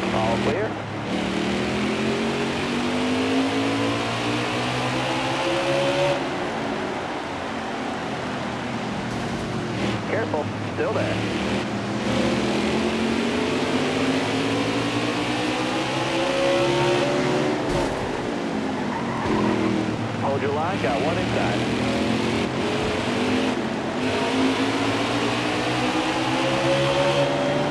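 Race car engines roar and whine, rising and falling in pitch.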